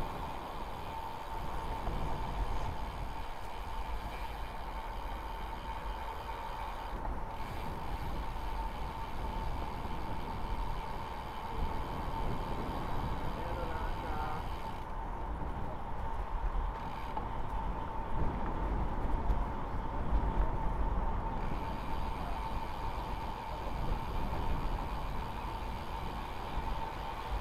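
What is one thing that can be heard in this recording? Wind rushes and buffets steadily outdoors.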